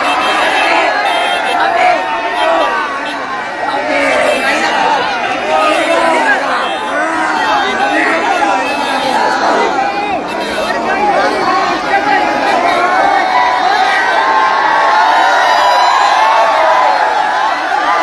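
A large crowd outdoors cheers and chants loudly.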